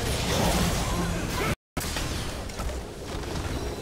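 Magical blasts crackle and whoosh in a battle.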